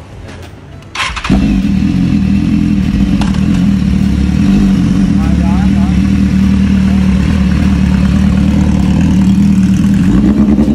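A motorcycle engine starts and idles with a deep, loud rumble.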